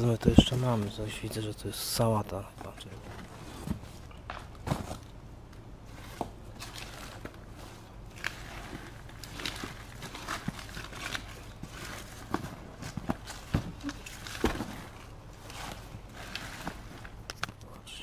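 Plastic bags rustle and crinkle close by.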